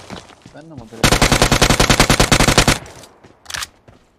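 A rifle fires in a rapid burst of gunshots.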